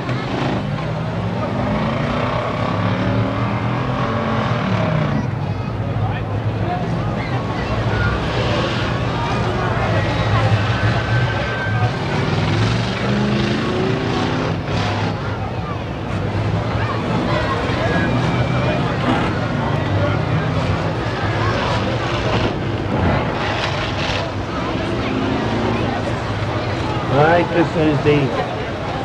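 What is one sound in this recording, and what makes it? A crowd of people chatters and shouts loudly.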